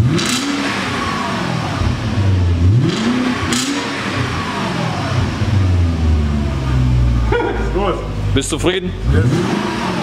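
A car engine rumbles deeply and revs up and down repeatedly.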